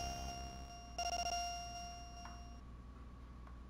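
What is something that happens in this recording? A bright electronic chime rings out and fades.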